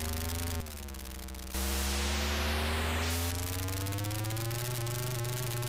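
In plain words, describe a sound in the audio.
A buzzy electronic car engine drones, its pitch dipping and then slowly rising.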